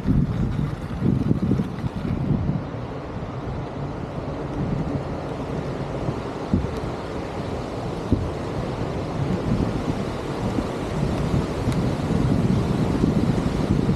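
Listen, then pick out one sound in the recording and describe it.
Wheels rumble and clatter over wooden boards.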